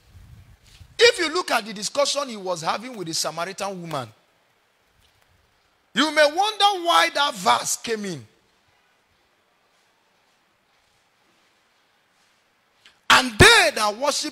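A man preaches with animation into a microphone, in bursts with pauses.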